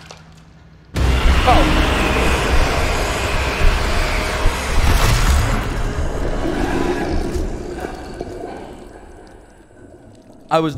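A monster lets out a loud, harsh roar.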